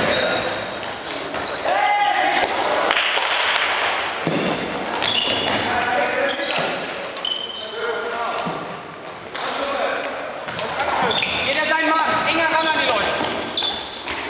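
Plastic sticks clack against a ball and each other.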